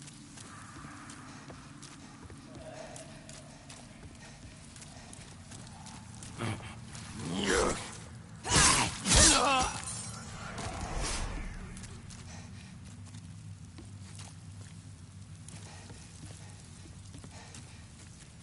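Armored footsteps run steadily over rough ground.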